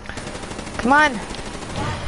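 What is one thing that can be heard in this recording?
Gunfire rattles from a game.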